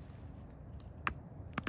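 A tool presses against the edge of a stone, which snaps with a sharp click.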